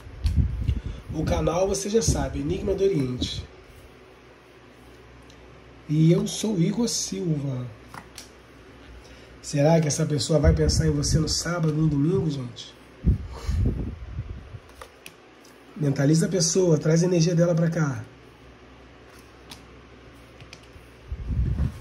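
Playing cards are set down softly on a table one by one.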